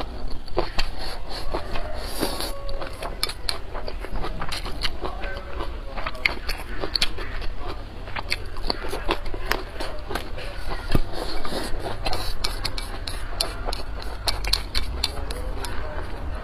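Chopsticks click against a bowl.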